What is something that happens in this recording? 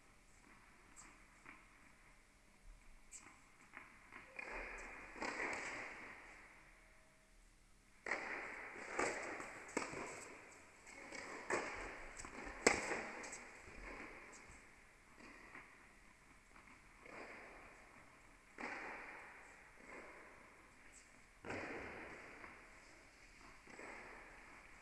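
Tennis balls are hit with rackets, echoing in a large hall.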